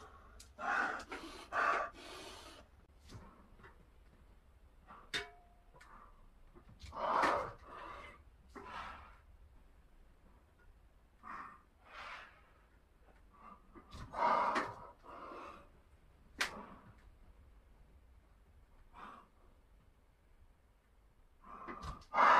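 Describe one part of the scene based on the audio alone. A man breathes hard and grunts with effort.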